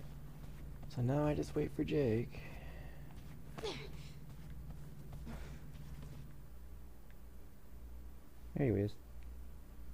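A young woman cries out breathlessly, close by.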